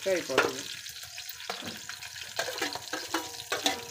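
A metal ladle clinks against a steel pot and lid.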